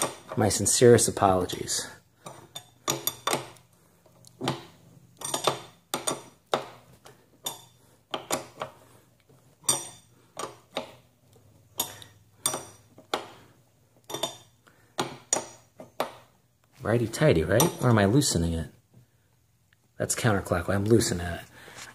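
A pedal exerciser clicks and creaks rhythmically as it turns.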